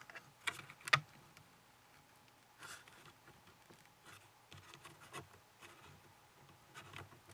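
Plastic gears click and rattle as a hand turns them.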